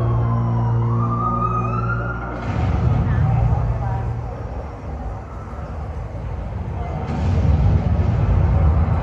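Loud music with a booming beat plays through loudspeakers in a large hall.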